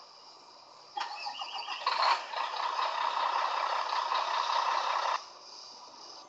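A small tow vehicle's engine hums steadily.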